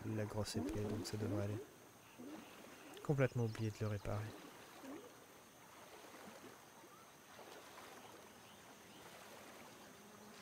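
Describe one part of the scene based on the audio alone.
Water splashes softly as someone swims.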